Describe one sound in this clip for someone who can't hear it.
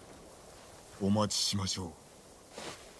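A man answers calmly and close by.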